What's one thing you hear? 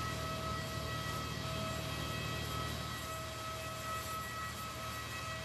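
A parked jet airliner's engine whines steadily.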